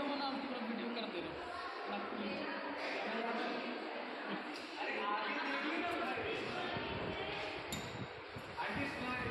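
A crowd chatters in the background of an echoing hall.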